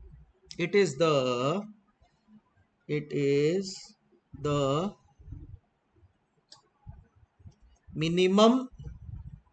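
A man speaks slowly and clearly into a close microphone, pausing between phrases.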